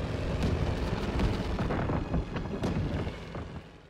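Anti-aircraft shells burst with dull thuds.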